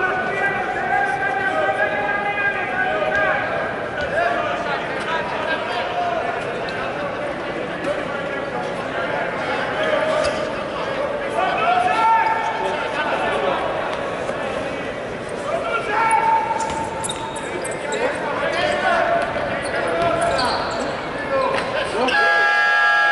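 A crowd chants and cheers in a large echoing arena.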